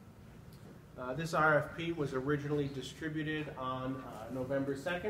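A man speaks calmly to a room.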